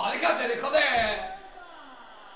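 A middle-aged man shouts excitedly close to a microphone.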